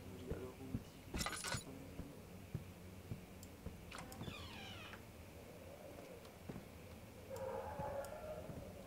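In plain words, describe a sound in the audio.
Footsteps thud on a wooden floor.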